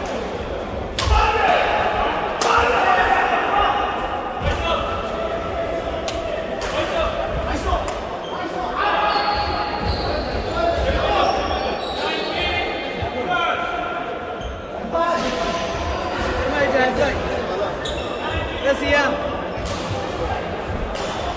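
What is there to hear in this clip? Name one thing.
Men talk and call out nearby in a large echoing hall.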